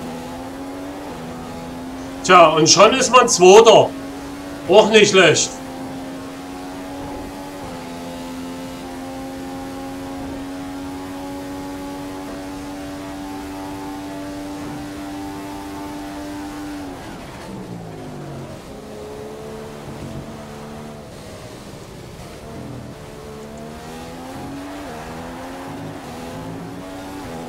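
A racing car engine screams at high speed, shifting up through the gears, then drops in pitch as the car slows.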